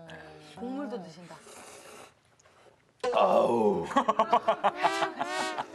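A man slurps soup noisily from a bowl.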